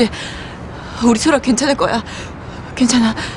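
A young woman speaks anxiously nearby.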